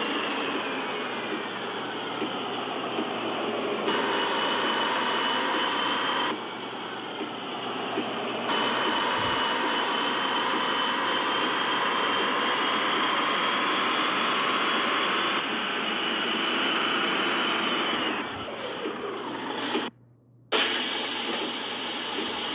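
A bus engine hums and whines as the bus drives along.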